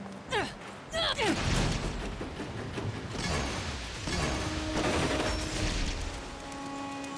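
A magical whoosh bursts and shimmers.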